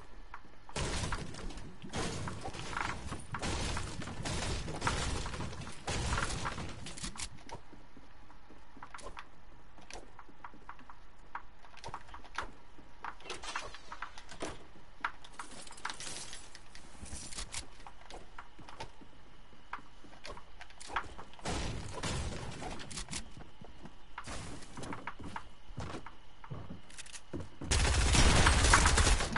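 Footsteps of a game character run quickly across hard floors.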